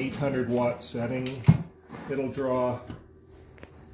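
A plug clicks into a wall socket.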